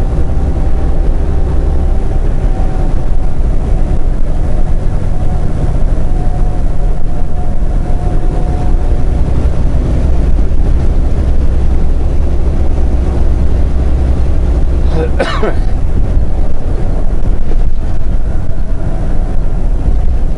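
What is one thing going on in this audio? A truck's diesel engine drones steadily from inside the cab.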